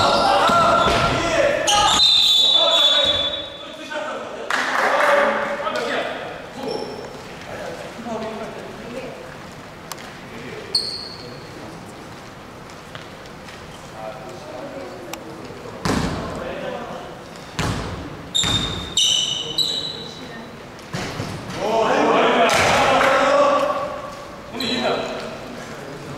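Sneakers squeak sharply on a wooden court in a large echoing gym.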